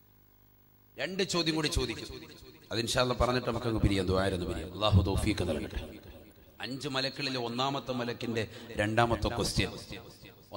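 A man preaches loudly and with fervour into a microphone.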